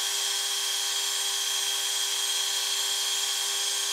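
A lathe tool cuts into spinning metal.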